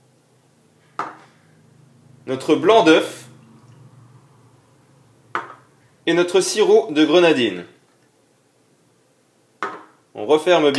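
Small glasses clink as they are set down on a hard surface.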